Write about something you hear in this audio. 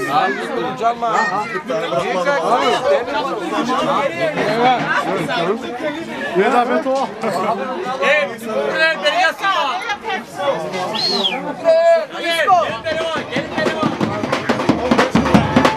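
A crowd of men and women talk and shout over one another close by.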